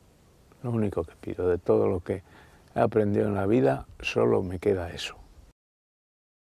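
An older man speaks calmly and close up.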